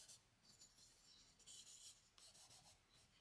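Charcoal scratches and rasps across paper in short strokes.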